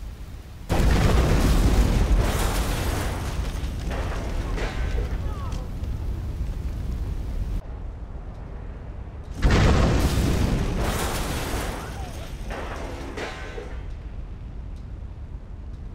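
Flames roar and crackle.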